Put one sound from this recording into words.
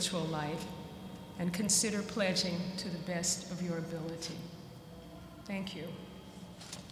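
An elderly woman reads aloud through a microphone in a large echoing hall.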